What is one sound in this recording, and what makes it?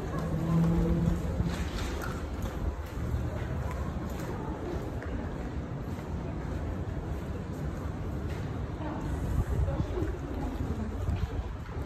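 Footsteps tap on cobblestones outdoors.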